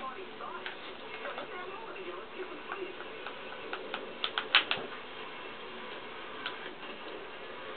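Skateboard wheels roll and clatter from a television speaker.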